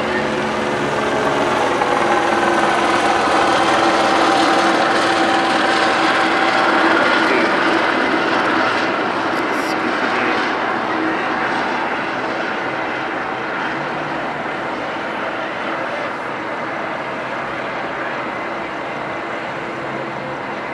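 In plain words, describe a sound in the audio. City traffic hums and rumbles steadily.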